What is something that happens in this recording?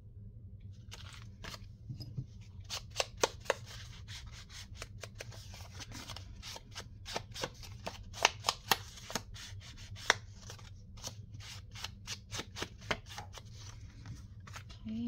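A glue stick rubs and taps against card.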